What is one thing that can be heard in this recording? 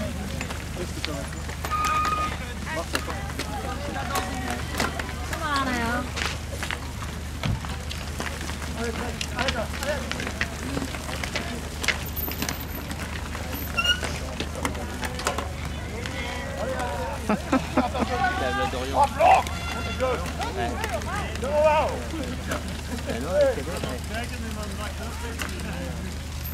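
Bicycle tyres crunch over gravel as riders pass close by.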